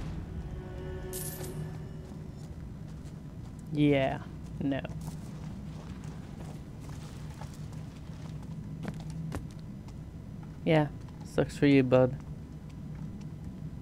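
Footsteps scuff softly on a stone floor.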